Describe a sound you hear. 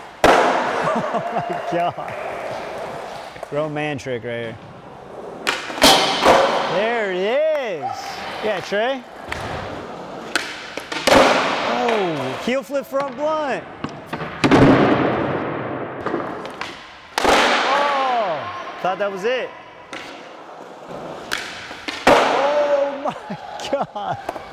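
Skateboard wheels roll and rumble across smooth concrete in a large echoing hall.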